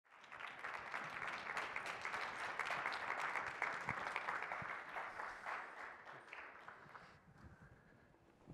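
An audience applauds in a large hall, then the applause fades away.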